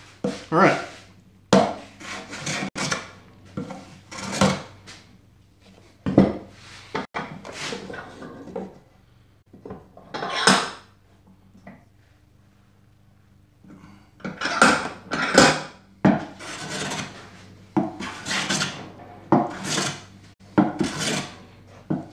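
A hand plane shaves wood in quick, rasping strokes.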